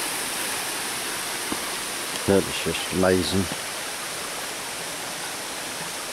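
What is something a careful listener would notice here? A shallow stream trickles softly over rocks.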